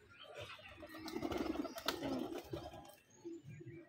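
A pigeon flaps its wings as it takes off.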